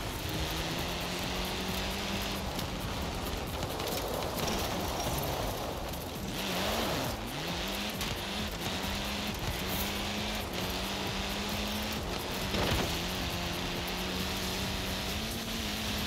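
A rally car engine drones steadily at high revs, dipping and rising with gear shifts.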